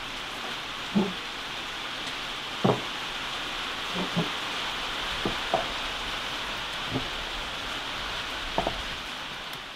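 Glass jars clink and their metal lids tap as hands move them.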